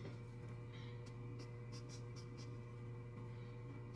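A blending stump rubs softly across paper.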